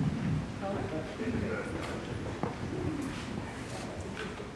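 A woman speaks softly in an echoing hall.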